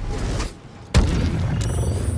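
A magical blast bursts with a loud boom.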